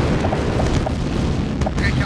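Small guns fire in short, rapid bursts.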